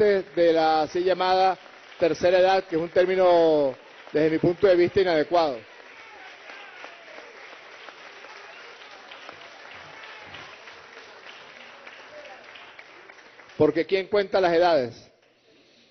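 A crowd of people claps their hands.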